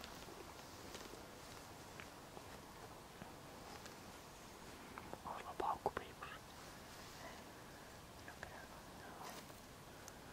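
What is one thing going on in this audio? An animal swims quietly through calm water with soft ripples.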